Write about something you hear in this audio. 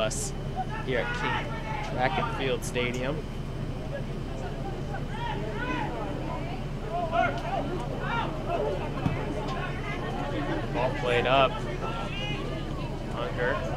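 Young men shout across an open field.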